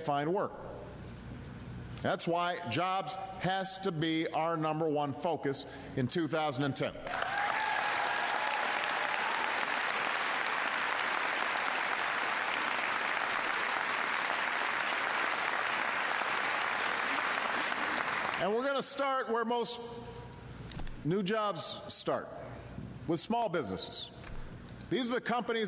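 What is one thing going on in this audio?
A man speaks firmly into a microphone to a crowd.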